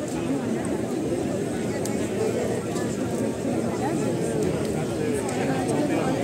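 A large crowd of people chatters loudly outdoors.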